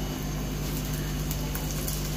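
A wooden spoon scrapes and stirs beans in a pan.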